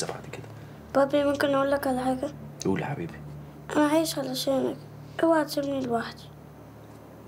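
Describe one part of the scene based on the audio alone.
A young boy speaks softly, close by.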